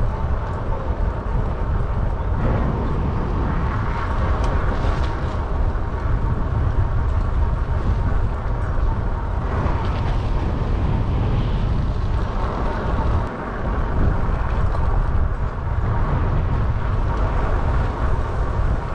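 Bicycle tyres roll over paving.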